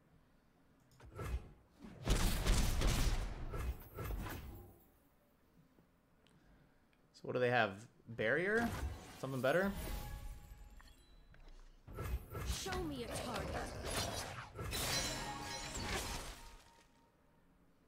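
Card game sound effects whoosh and chime.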